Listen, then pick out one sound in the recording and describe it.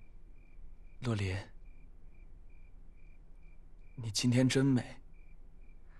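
A young man speaks softly and closely.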